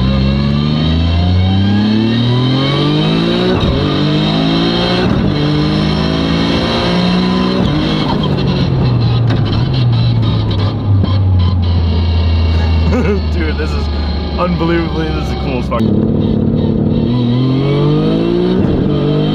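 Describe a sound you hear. A young man talks and laughs excitedly inside the car.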